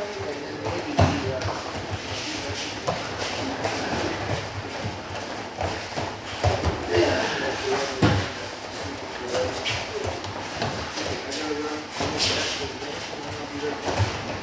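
Bodies thud onto the mat as people are thrown.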